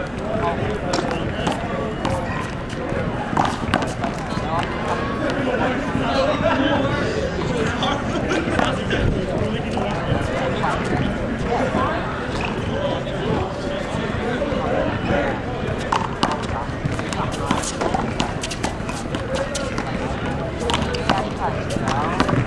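A small ball smacks against a wall and bounces on concrete.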